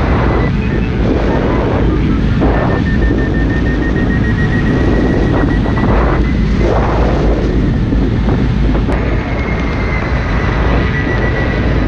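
Strong wind roars and buffets past a close microphone.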